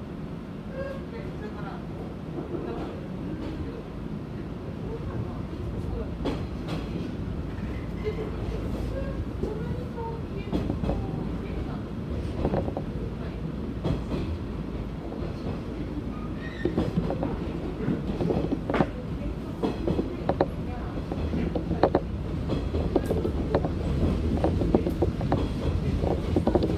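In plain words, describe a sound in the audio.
A train rumbles steadily along the rails, clattering over joints as it speeds up.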